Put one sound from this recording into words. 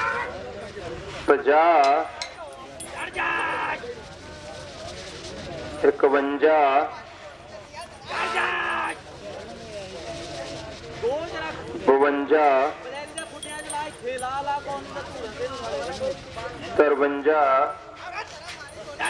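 Hooves thud on soft dirt as cattle run.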